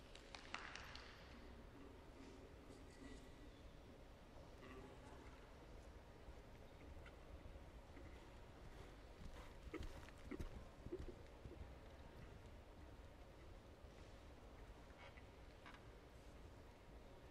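A horse's hooves thud softly on loose ground as it canters.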